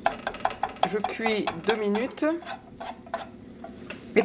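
A metal whisk clicks and scrapes rapidly against a pot.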